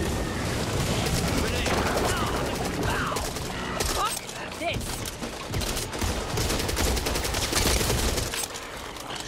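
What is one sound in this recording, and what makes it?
A rifle fires rapid bursts of shots at close range.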